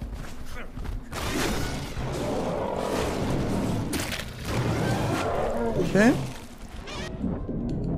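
A knife tears through thick hide.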